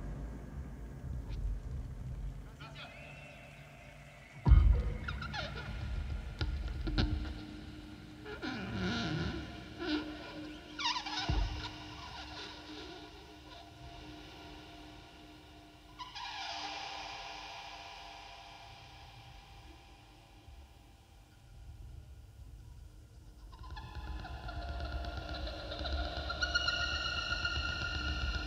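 Electronic instruments play buzzing, glitchy tones and drones.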